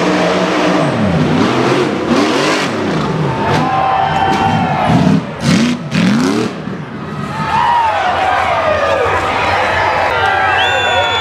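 A crowd outdoors cheers and shouts.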